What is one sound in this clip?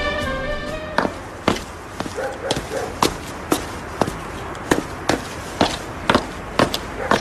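Footsteps thud steadily on wooden stairs and floor.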